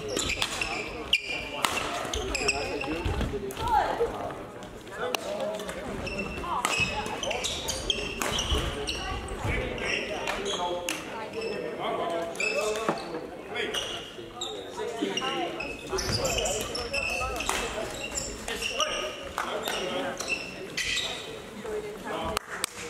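Shoes squeak sharply on a sports floor.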